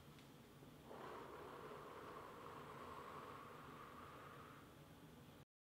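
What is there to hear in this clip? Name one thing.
A woman breathes out forcefully through a mask.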